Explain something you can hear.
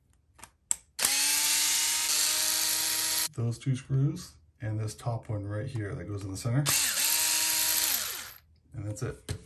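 An electric screwdriver whirs as it drives screws.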